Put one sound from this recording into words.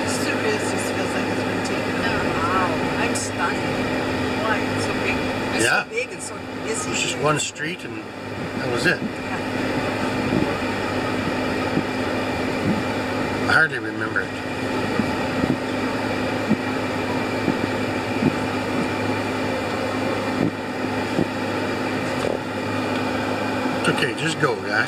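A car engine hums steadily from inside a slowly moving car.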